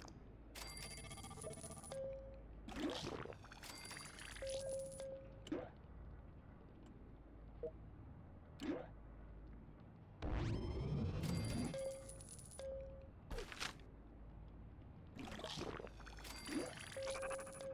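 Short electronic whooshes and chimes sound as game menus open and close.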